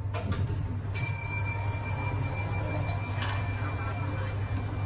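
A lift's arrival chime rings.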